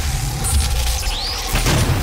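Flesh squelches and tears as a monster is ripped apart.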